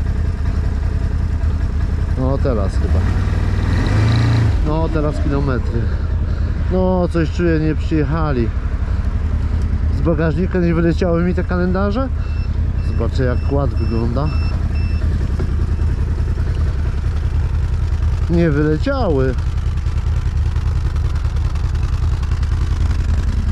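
A quad bike's engine rumbles, then idles.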